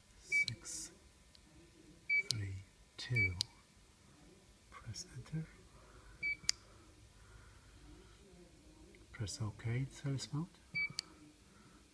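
A keypad gives a short high beep with each button press.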